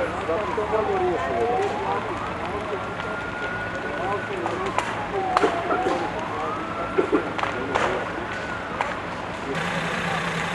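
A siren wails, sweeping slowly up and down.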